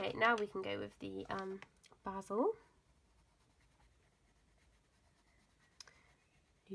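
A coloured pencil scratches softly on paper.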